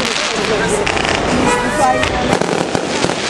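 A rocket whistles as it shoots upward.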